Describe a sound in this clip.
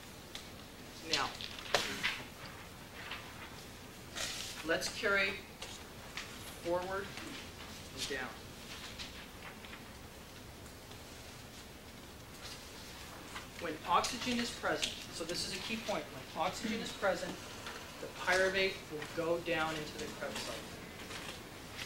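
A man lectures, speaking with pauses.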